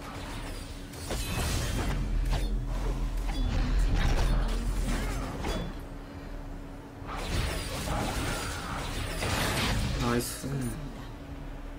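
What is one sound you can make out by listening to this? Video game sword strikes and magic blasts clash in a fight.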